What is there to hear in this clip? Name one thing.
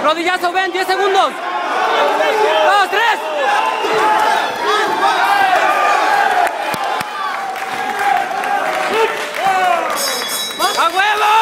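A crowd of men and women shouts and cheers loudly.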